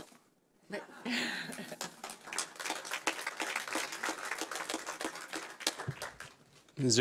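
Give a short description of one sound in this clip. A crowd applauds in a hall.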